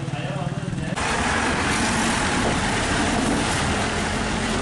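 A bus engine rumbles close by as the bus rolls past.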